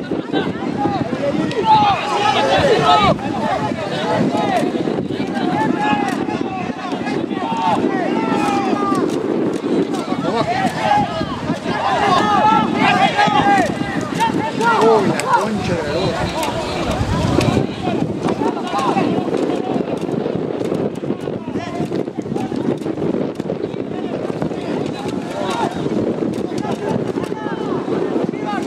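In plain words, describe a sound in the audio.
A small crowd of spectators shouts and cheers outdoors.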